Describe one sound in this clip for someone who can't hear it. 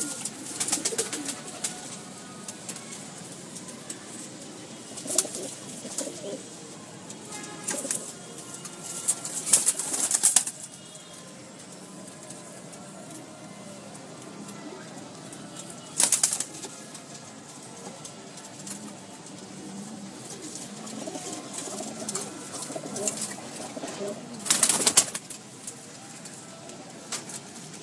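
Pigeons coo softly and steadily close by.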